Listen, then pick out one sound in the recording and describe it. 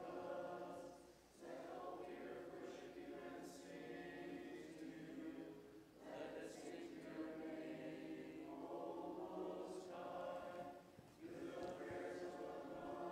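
A choir of men and women sings a chant together in a large echoing space.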